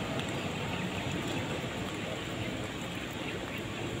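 A truck drives past on a nearby road.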